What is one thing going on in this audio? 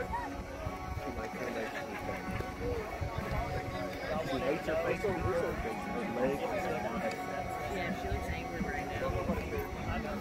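Several men talk and call out casually outdoors, close by and farther off.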